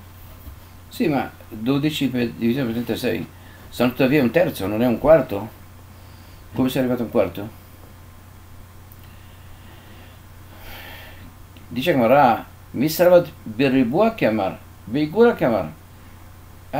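An elderly man speaks calmly and clearly, close to a microphone.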